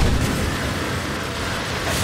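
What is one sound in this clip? A tank engine rumbles as the tank rolls forward.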